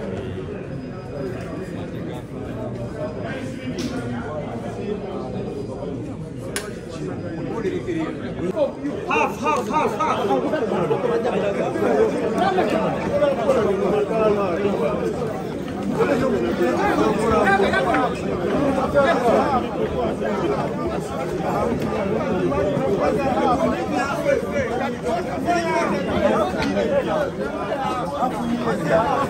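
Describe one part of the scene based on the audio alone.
A large crowd of young people chatters and murmurs outdoors.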